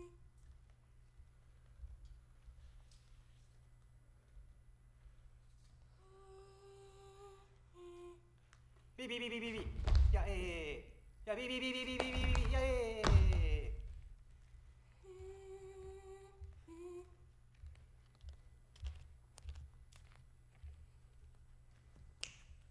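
Feet step and shuffle softly on a stage floor.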